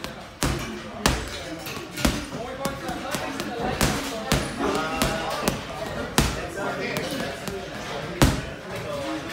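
Gloved punches thud hard against a heavy bag.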